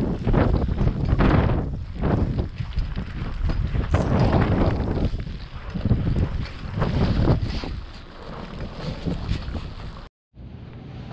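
Strong wind gusts and roars outdoors, buffeting the microphone.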